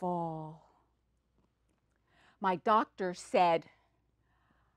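An elderly woman speaks expressively, in short bursts.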